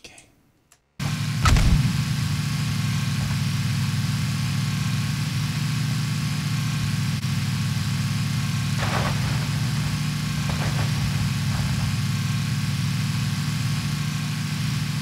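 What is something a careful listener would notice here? An off-road vehicle's engine drones as it drives in a video game.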